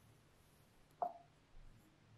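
A finger presses a laptop key with a soft click.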